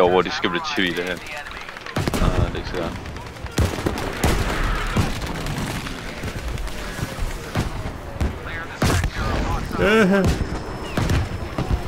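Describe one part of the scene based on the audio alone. Gunfire crackles in short bursts.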